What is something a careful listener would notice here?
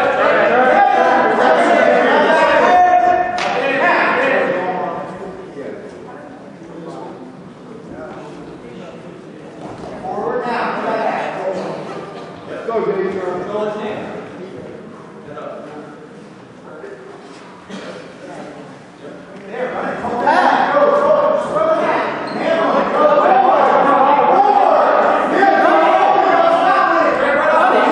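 A crowd of spectators cheers and shouts loudly in a large echoing gym.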